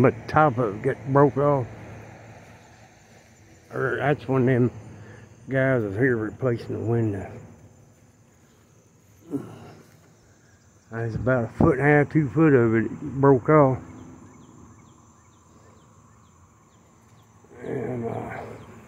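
A man speaks calmly close by, pausing now and then.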